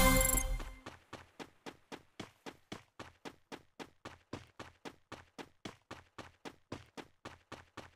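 Quick footsteps run steadily over ground.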